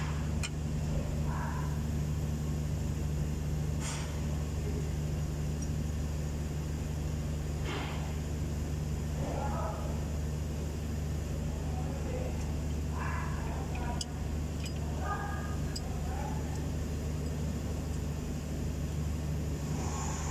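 An engine idles with a steady low hum.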